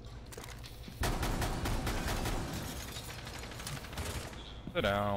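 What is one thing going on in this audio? A ceiling breaks apart with crumbling debris.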